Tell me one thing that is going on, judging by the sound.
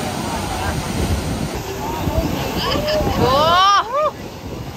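Waves crash and surge against rocks.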